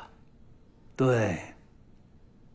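A middle-aged man cries out with animation close by.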